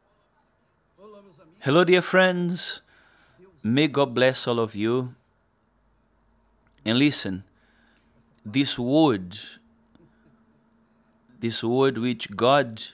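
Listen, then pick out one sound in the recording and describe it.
An elderly man speaks calmly in short phrases, close to a microphone.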